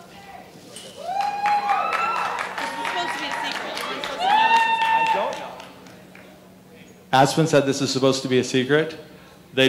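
Young people shout and call out in a large echoing hall.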